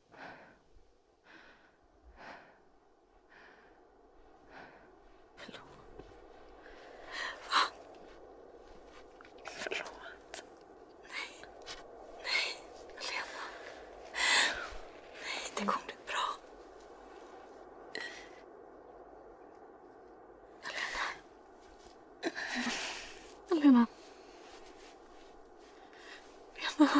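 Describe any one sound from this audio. A young woman gasps and breathes raggedly close by.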